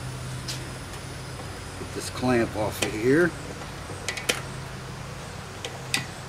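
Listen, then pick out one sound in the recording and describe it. Metal parts click and clank as a man handles a machine.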